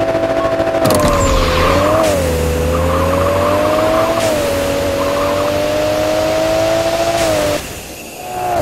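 A car engine roars as it accelerates hard, dipping briefly at each gear change.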